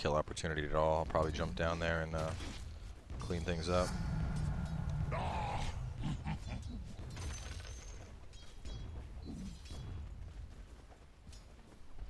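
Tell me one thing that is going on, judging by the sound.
Weapons clash and magic crackles in a video game fight.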